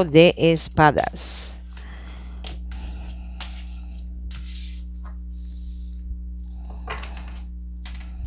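Playing cards rustle and slide as a hand handles them.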